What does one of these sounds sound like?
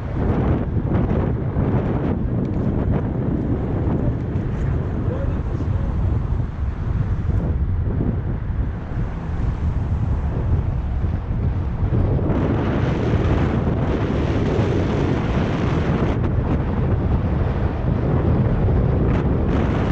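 Wind rushes loudly past a moving bicycle outdoors.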